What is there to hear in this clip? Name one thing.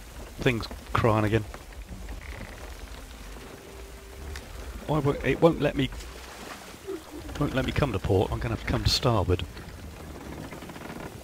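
Waves slosh against a wooden ship's hull.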